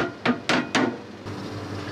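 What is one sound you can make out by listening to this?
A metal lid knocks open.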